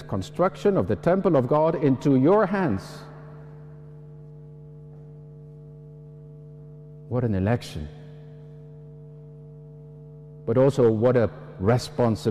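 An elderly man speaks slowly and calmly through a microphone and loudspeakers, with pauses between phrases.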